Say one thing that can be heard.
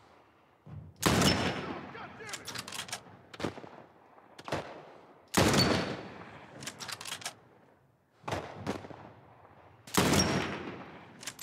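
A rifle fires loud shots that echo away.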